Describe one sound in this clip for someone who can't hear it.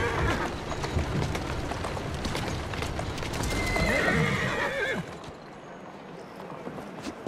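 A horse's hooves clatter on cobblestones.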